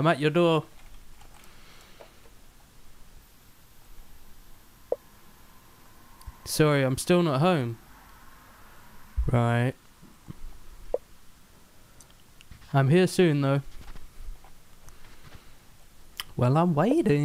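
A young man speaks loudly and expressively into a microphone in short bursts.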